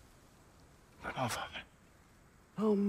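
A young man speaks briefly.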